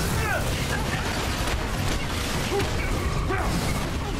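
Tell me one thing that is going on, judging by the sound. Metal robots crash and clang as they break apart.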